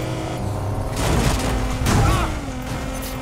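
Something crashes and shatters against a car.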